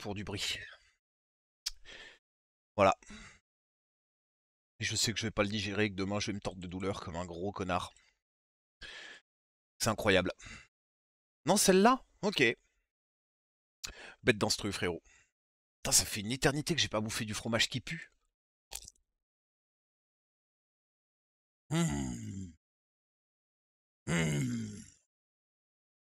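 A man talks into a headset microphone with animation, in short bursts with pauses.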